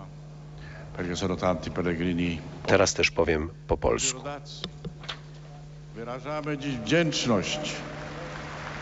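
An elderly man speaks slowly and solemnly through a microphone, with an echo outdoors.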